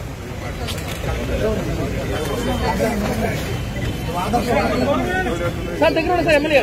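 Several men talk nearby with animation.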